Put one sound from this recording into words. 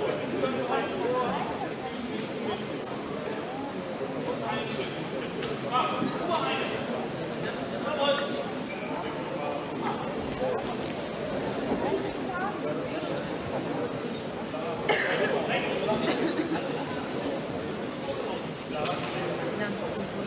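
Spectators murmur and call out in an echoing hall.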